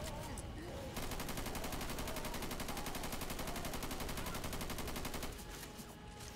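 A rifle fires in a long rapid burst.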